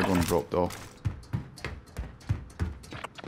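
Boots thud on metal ladder rungs in a steady rhythm.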